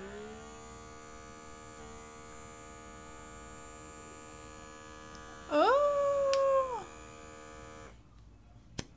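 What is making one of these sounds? A small electric device hums steadily close by.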